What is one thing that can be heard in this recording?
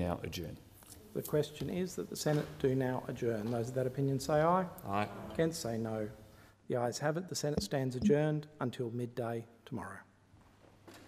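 A man speaks formally through a microphone in a large room.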